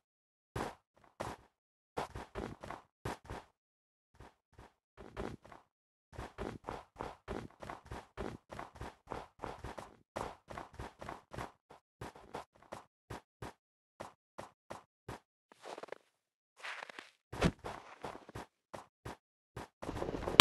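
Footsteps crunch on snow in a game.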